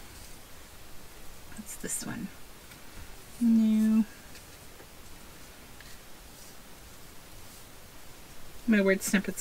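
Paper scraps rustle softly as hands sort through them.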